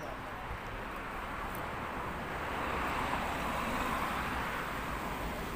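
A car drives past on a road.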